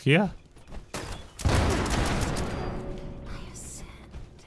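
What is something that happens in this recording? A gun fires rapidly, with a loud blast that rumbles away.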